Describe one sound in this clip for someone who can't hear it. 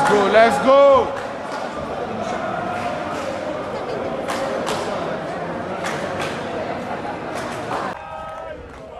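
A crowd murmurs and chatters nearby in an echoing hall.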